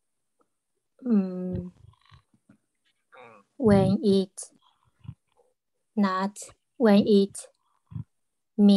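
A young woman speaks through an online call, with pauses.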